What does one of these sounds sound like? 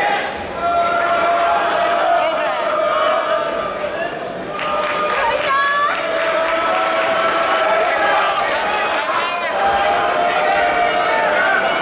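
A crowd of spectators shouts and cheers throughout a large echoing hall.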